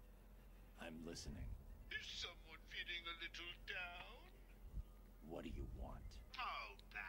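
A deep-voiced man speaks gruffly and calmly.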